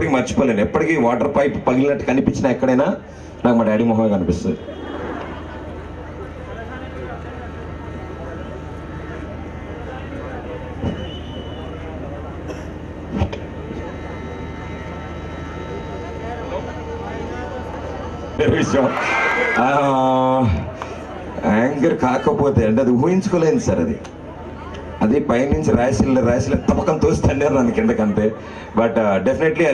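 A man talks with animation through a microphone over a loudspeaker.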